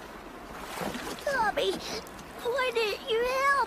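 A young cartoon voice speaks anxiously.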